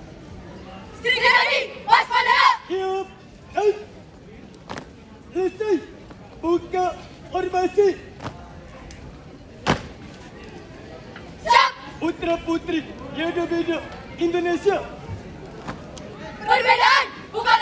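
A brass band plays short, punchy phrases outdoors.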